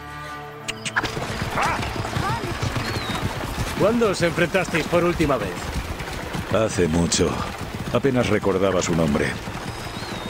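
Horse hooves clop on a dirt track.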